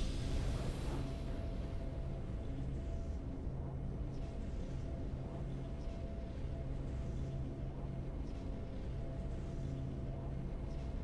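A triumphant victory theme plays softly and steadily.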